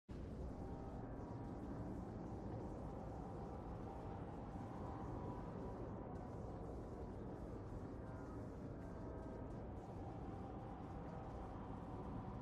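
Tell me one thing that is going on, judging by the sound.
A spacecraft's engines rumble steadily as it flies.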